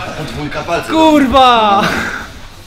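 A young man groans with strain up close.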